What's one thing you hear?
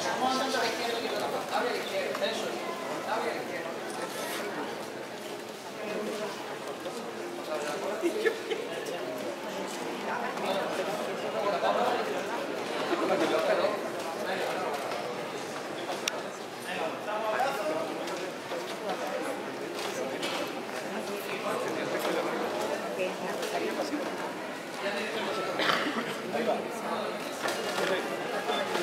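A crowd of men and women murmurs and talks close by.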